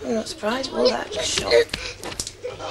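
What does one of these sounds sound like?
A young girl speaks close by.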